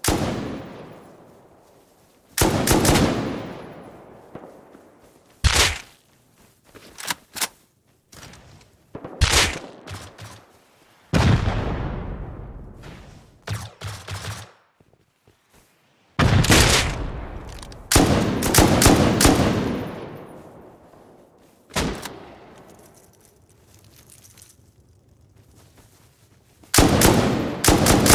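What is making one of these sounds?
Rifle shots crack loudly and echo away into the distance.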